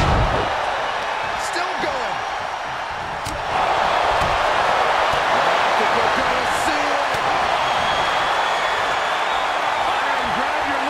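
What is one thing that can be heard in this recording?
A large crowd cheers and roars loudly, growing louder.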